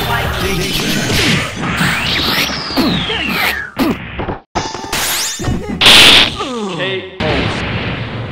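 A cartoon orange voice talks in a high squeaky tone.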